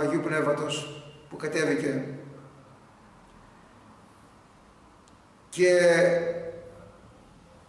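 An elderly man speaks calmly and slowly, close to a microphone, with long pauses.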